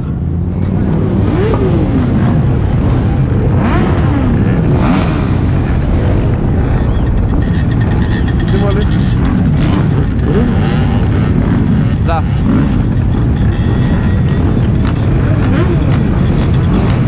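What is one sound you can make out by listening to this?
Scooter engines rev and whine nearby.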